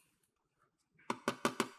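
A hand taps on a plastic toy.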